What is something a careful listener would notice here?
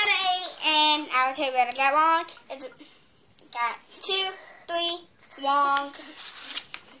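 A young girl talks and sings playfully, close by.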